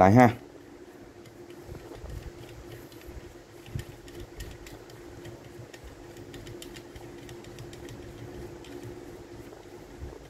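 A hacksaw's handle is screwed tight with faint creaking.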